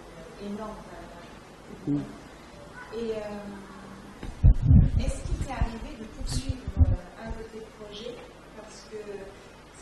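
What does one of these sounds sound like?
An elderly man speaks calmly through a microphone in a large room.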